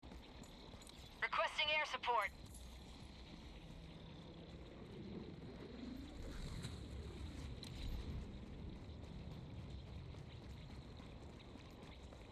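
Heavy armoured footsteps crunch over rocky ground.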